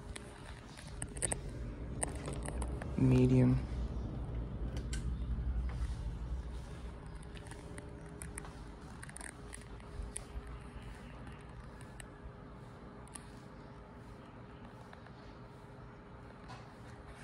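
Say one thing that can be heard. A ceiling fan whirs steadily with a low hum.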